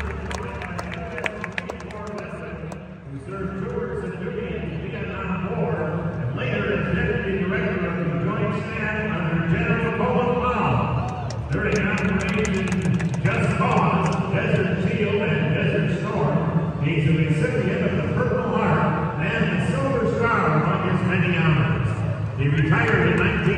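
A young singer performs a song through loudspeakers that echo around a large arena.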